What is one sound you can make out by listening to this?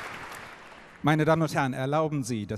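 An older man speaks calmly into a microphone, heard over loudspeakers in a large hall.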